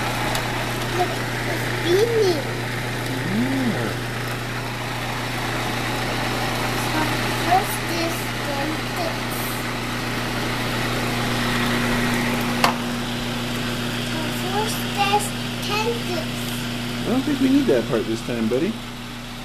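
A toddler babbles and coos close by.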